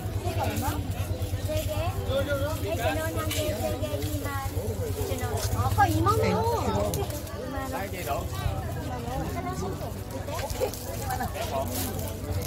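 A woman speaks with a vendor's calm persuasion.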